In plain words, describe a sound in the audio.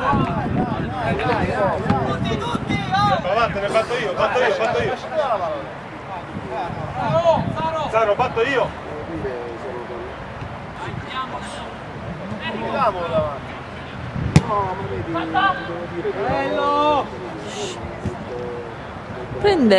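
Young male players shout to each other across an open field.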